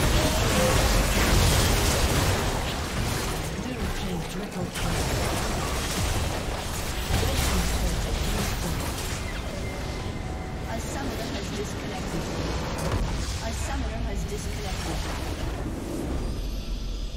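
Magic blasts crackle and boom in a busy fight.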